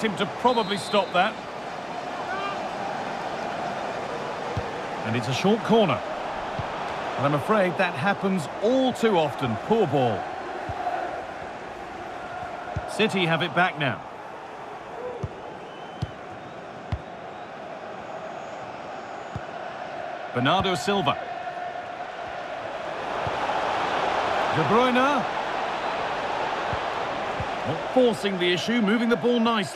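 A large stadium crowd murmurs and cheers steadily, swelling loudly at times.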